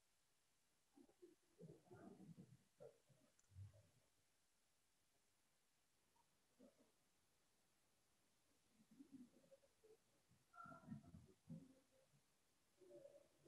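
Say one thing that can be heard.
A man speaks quietly and haltingly over an online call.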